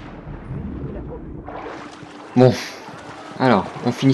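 Water splashes as a body plunges in and swims.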